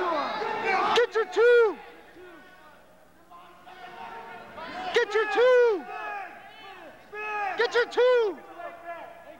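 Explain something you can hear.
A man in the crowd shouts sharp, short calls.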